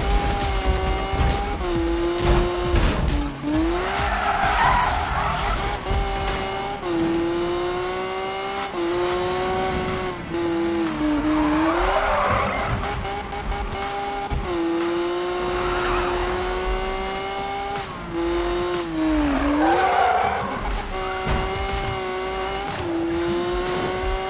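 A car engine roars steadily, its pitch dipping and rising with gear changes.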